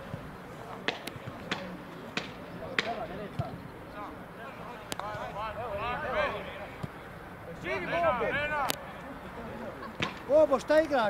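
A football is kicked on grass with dull thuds.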